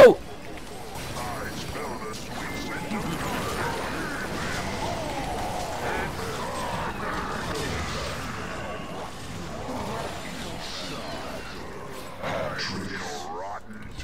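Weapons clash and spells burst in a fast fantasy battle.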